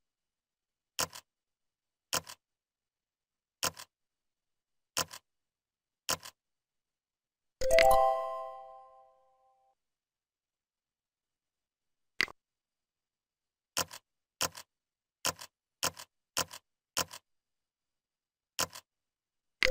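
Game clicks sound as letters are entered.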